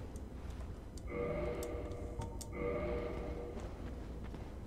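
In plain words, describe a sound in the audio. A soft chime rings out twice.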